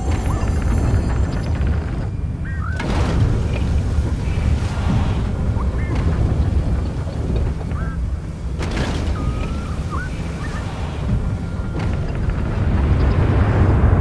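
Wind blows with a low, steady roar.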